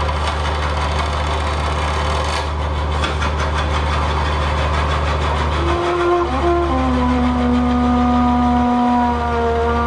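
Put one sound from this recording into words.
A low electronic drone hums steadily and loudly.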